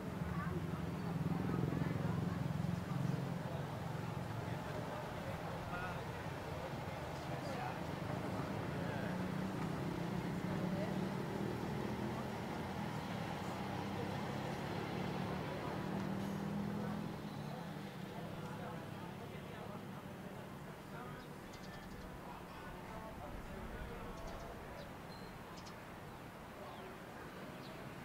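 Street traffic hums steadily outdoors and grows quieter.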